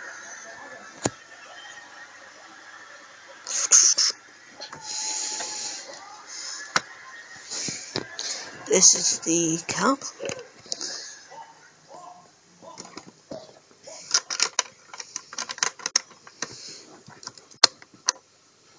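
Plastic toy bricks click and rattle as a hand handles them.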